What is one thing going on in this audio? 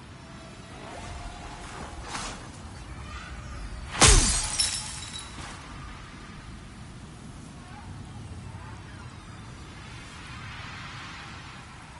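Armoured footsteps clank on a stone floor.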